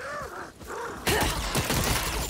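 A fiery spell bursts with a loud roar.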